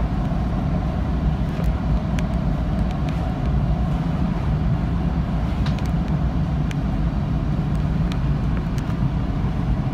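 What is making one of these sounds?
Wheels click and squeal faintly on the rails now and then.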